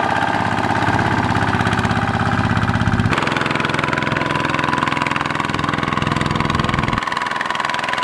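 A small diesel engine chugs steadily close by.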